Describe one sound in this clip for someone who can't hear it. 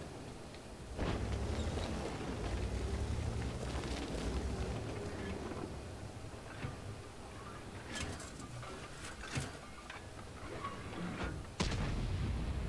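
A tank cannon fires with a sharp bang.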